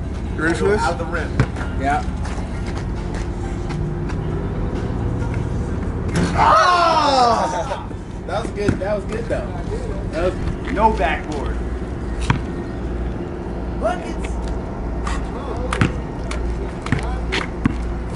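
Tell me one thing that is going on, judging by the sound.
A basketball bounces on pavement.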